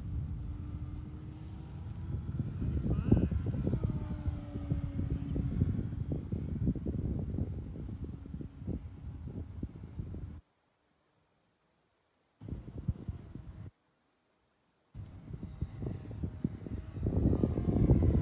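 A small model plane engine buzzes overhead, rising and falling in pitch.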